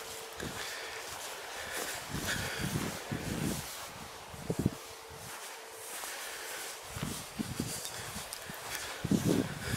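Wind blows and rumbles against the microphone outdoors.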